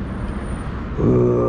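A dog barks nearby.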